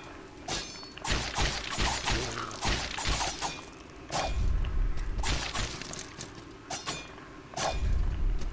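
Sword blades slash and clang in quick bursts.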